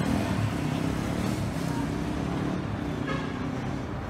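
A bus drives past.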